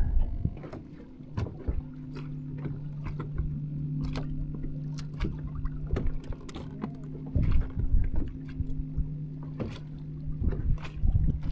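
An electric boat motor hums steadily.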